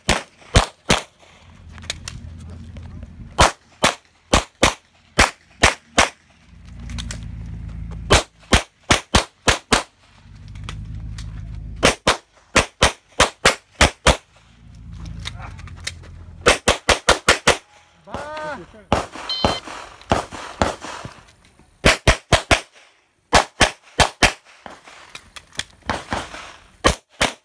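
A handgun fires in quick bursts of sharp, loud shots outdoors.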